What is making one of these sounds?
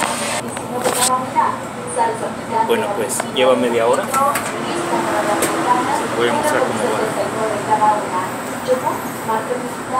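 A man speaks close by, calmly.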